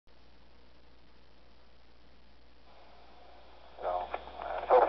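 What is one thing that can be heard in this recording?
A handheld radio hisses softly with static.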